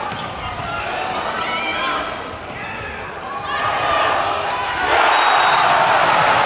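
A crowd in a large echoing hall cheers and shouts.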